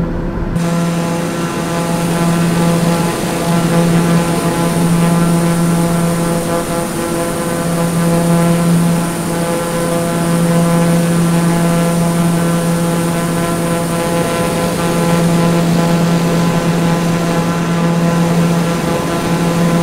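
A propeller plane's engine drones steadily in flight.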